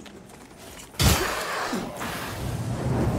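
A fiery explosion bursts loudly.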